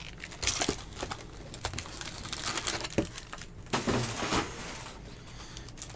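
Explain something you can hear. Cardboard packs tap and shuffle against each other.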